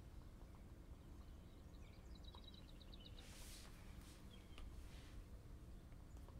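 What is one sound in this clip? A pen taps lightly on a tablet's glass.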